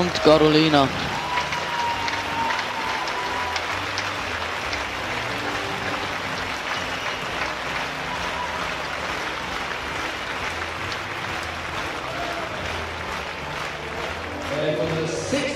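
A large crowd applauds and cheers in an echoing hall.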